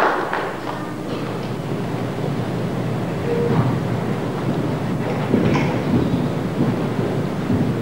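A crowd of adults and children chatters in a large echoing hall.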